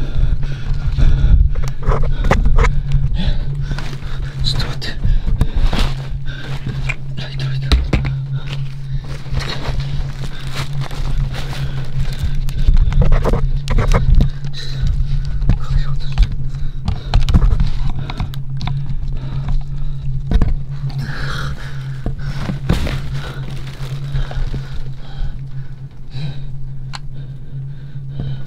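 Clothing rustles and scrapes close by.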